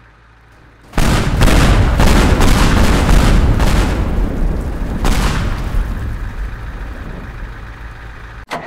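A heavy crash of smashing metal and clattering debris bursts out loudly.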